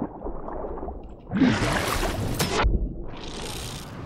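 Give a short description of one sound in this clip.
Water bubbles and gurgles as a swimmer goes under.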